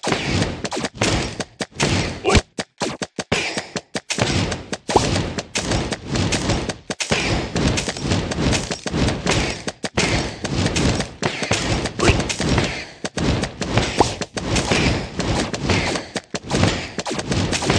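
Small magical blasts pop and crackle in a game battle.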